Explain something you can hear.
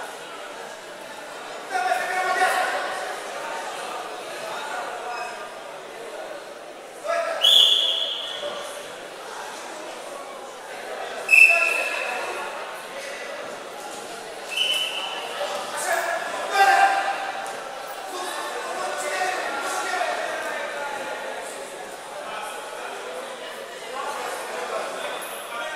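A large crowd cheers and shouts in a big echoing hall.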